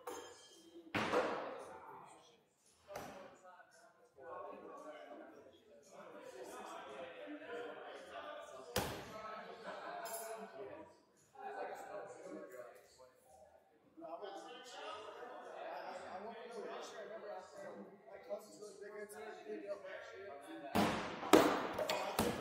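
Axes thud into wooden targets.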